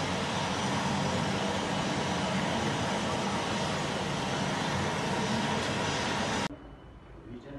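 A jet engine roars steadily nearby.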